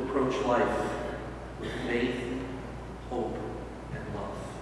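An elderly man speaks calmly through a microphone in an echoing hall.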